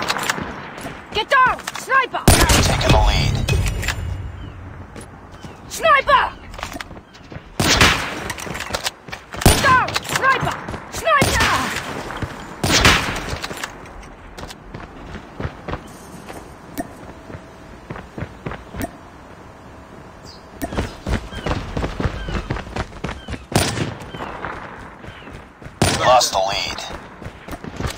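Footsteps run on hard ground.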